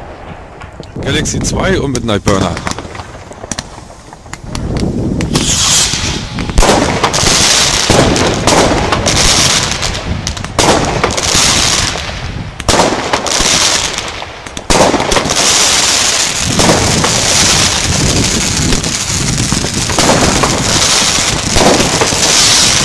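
Fireworks whoosh and crackle loudly outdoors.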